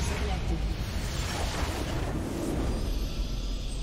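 A game's magic blast bursts with a loud crackling roar.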